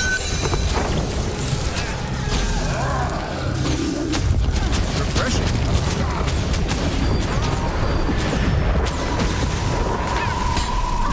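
Sharp game hit sounds strike repeatedly.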